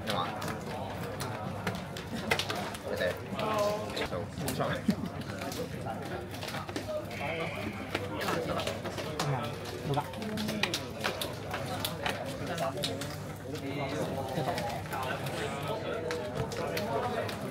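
Cards tap softly onto a play mat.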